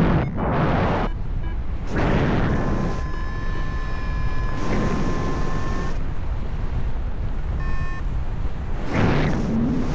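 Wind rushes and buffets loudly across the microphone high in open air.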